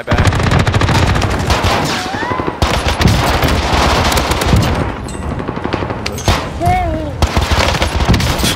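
Pistols fire rapid shots in quick bursts.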